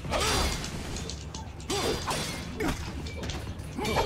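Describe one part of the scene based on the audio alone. A sword swishes and strikes in a game fight.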